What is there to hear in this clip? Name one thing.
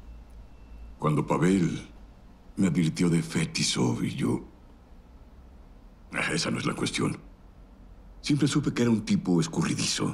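A middle-aged man speaks calmly and close by, in short phrases with pauses.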